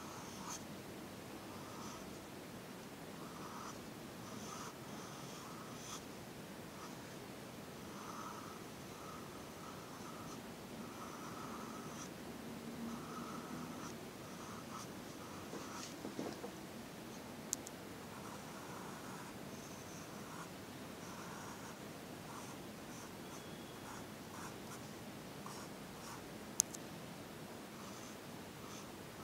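A pencil scratches softly on paper in short strokes.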